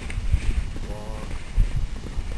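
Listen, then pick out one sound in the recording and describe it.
A man calls out to a horse from a distance.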